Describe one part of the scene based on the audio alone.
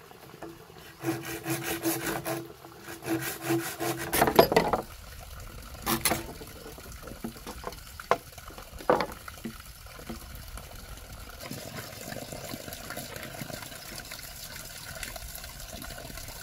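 A knife scrapes against bamboo.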